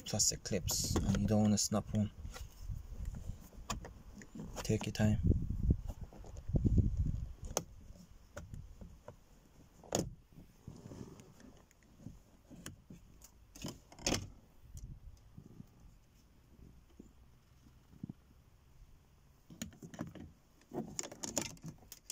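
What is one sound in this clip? Plastic trim clicks and snaps as it is pried loose.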